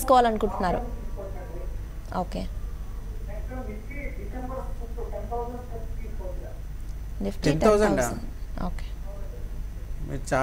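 A young woman reads out news calmly into a microphone.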